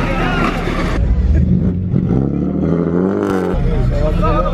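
A car engine rumbles and revs up close.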